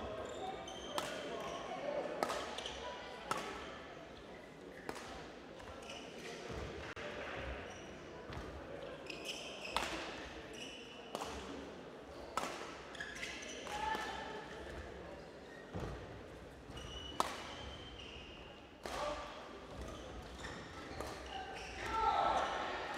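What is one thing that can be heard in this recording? Shuttlecocks are struck sharply by rackets in a large echoing hall.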